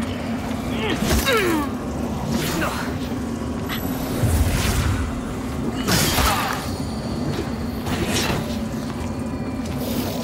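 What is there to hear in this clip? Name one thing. Magic blasts whoosh and burst.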